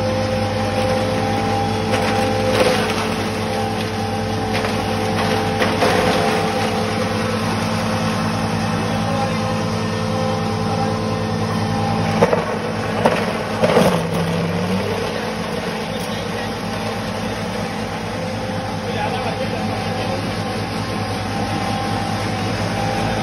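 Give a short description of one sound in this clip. A machine runs with a steady loud hum.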